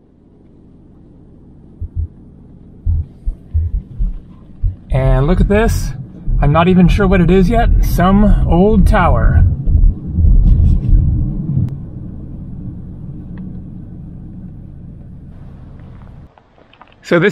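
A car engine hums low and steady as the car drives along a road.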